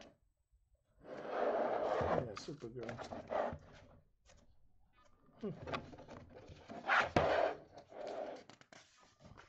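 Stiff paper pages rustle and flap as they are turned.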